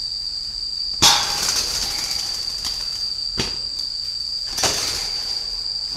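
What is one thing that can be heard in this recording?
Pigeons flutter their wings in a cage.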